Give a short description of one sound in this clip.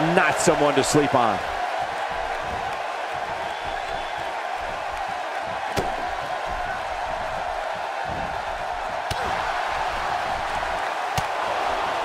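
A large crowd murmurs and cheers steadily in a big arena.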